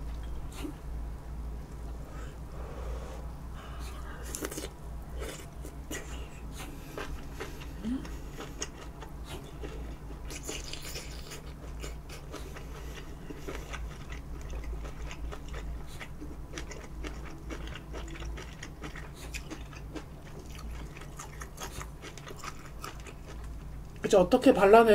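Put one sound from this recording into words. A young woman chews food noisily close to a microphone.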